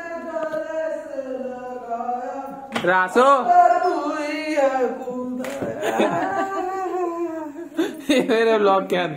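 A young man sings loudly close by.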